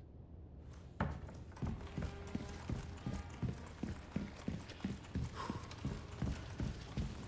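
Footsteps thud steadily on a hard floor, echoing in a stone hall.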